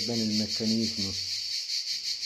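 A middle-aged man speaks briefly and calmly, close by.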